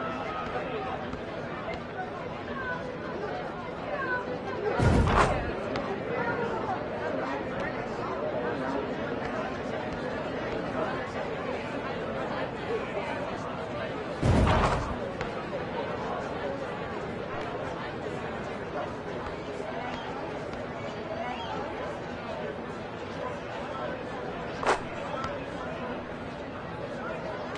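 A crowd murmurs steadily in the open air.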